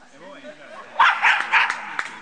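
A dog barks loudly several times.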